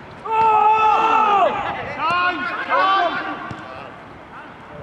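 Men shout loudly across an open outdoor pitch.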